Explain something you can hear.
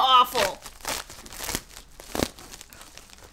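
Paper rustles and crinkles under a young woman's hands.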